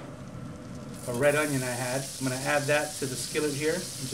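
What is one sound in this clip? Onions hiss and sizzle as they drop into a hot pan.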